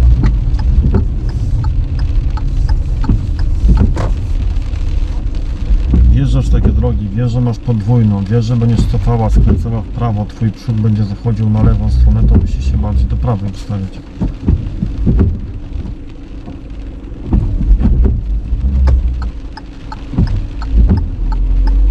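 Windscreen wipers swish across the glass.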